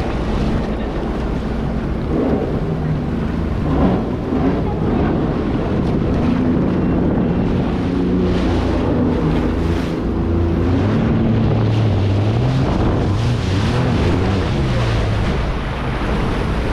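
Jet ski engines roar and whine steadily nearby.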